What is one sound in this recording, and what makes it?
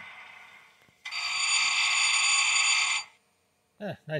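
A model locomotive horn blows loudly for a couple of seconds.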